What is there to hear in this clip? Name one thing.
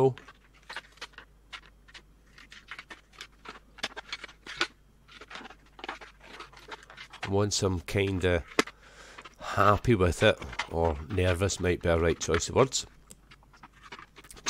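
Scissors snip through thin plastic with small crisp clicks.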